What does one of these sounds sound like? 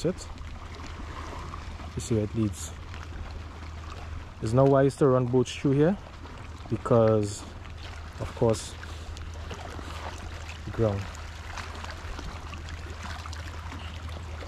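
Water laps gently against stones.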